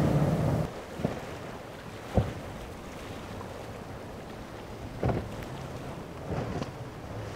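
A boat hull slaps hard against choppy waves.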